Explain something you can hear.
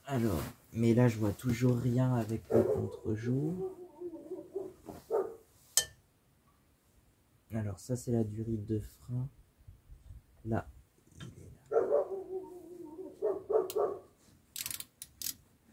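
Metal tools clink and tap against a car's brake parts.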